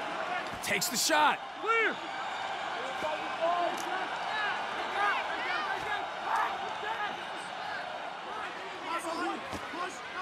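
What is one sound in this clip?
A large crowd cheers steadily in a stadium.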